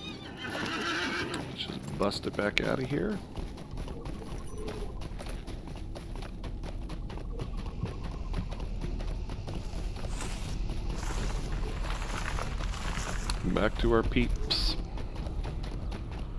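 A horse's hooves clop along at a steady pace.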